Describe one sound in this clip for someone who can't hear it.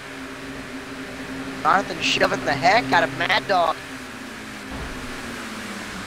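Race car engines hum steadily in the distance.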